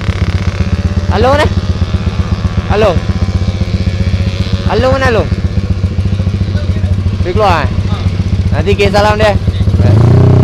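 A motorcycle engine revs up sharply in short bursts.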